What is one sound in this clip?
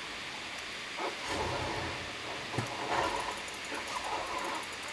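Wolves snarl and growl.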